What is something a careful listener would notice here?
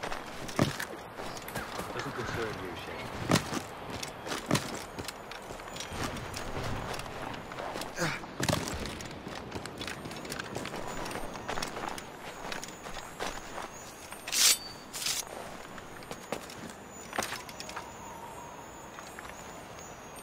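Hands and boots scrape against rock while climbing.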